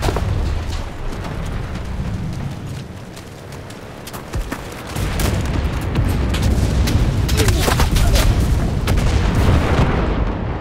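Fires roar with a deep rumble.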